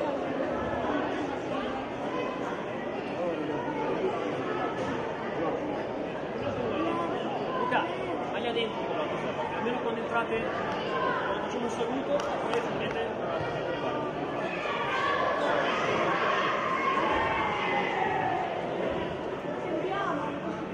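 Young boys shout and call out to each other in an echoing indoor hall.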